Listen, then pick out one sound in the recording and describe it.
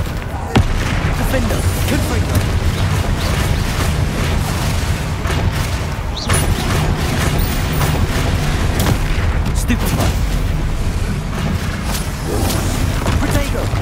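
Heavy stone blows thud and rumble.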